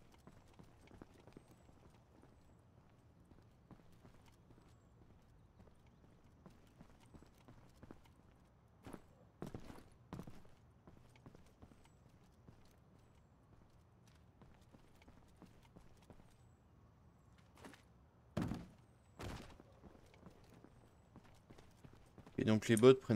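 Footsteps patter softly on stone.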